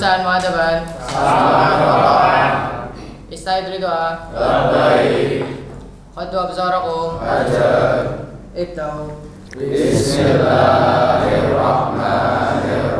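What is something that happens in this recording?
A group of teenage boys recite together in unison.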